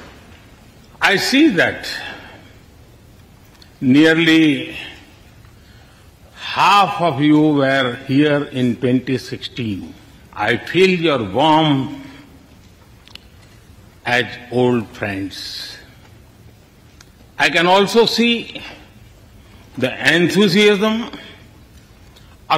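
An elderly man speaks slowly and formally into a microphone, with pauses between phrases.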